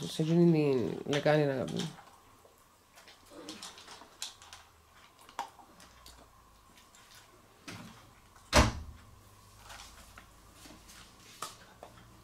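A puppy crunches dry food from a bowl.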